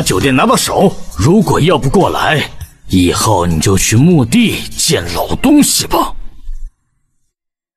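A middle-aged man speaks with animation nearby.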